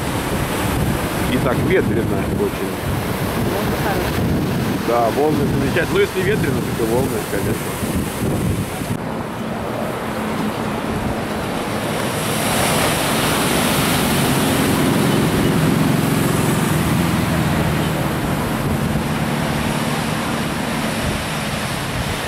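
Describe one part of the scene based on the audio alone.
Ocean waves break and crash, washing onto the shore.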